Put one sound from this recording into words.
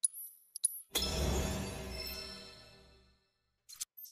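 A deep whooshing chime swells and fades as an option is reset.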